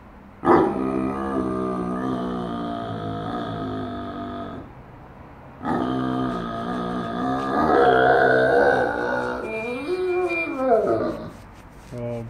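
A Great Dane whines and howls.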